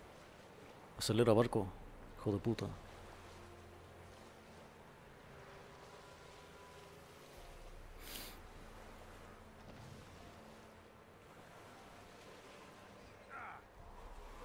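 Water splashes against a small boat's hull.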